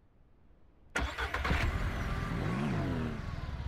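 A small vehicle engine starts and runs loudly.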